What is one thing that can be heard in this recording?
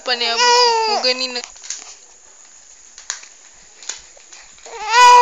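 A baby squeals and coos up close.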